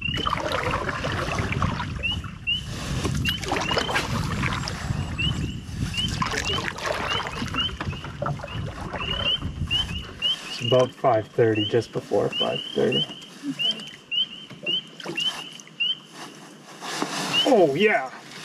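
A paddle splashes and dips in the water.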